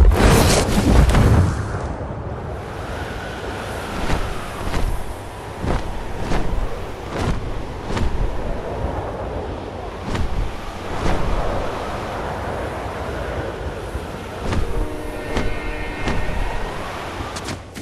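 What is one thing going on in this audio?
Wind rushes past in swelling gusts during a long glide through the air.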